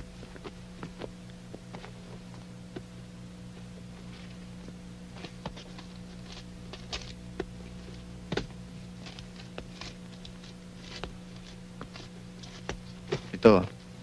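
Clothing rustles and clicks softly.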